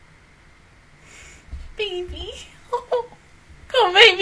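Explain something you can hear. A young woman talks and laughs with animation, close to a microphone.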